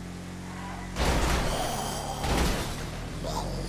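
A vehicle crashes with a loud thud.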